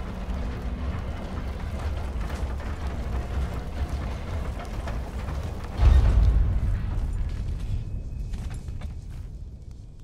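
Heavy footsteps thud on creaking wooden planks.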